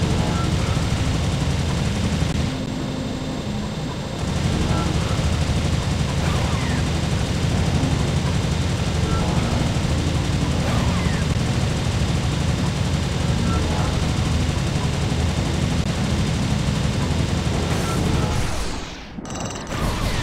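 A laser beam hums and crackles steadily.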